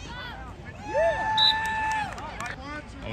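A referee blows a long whistle.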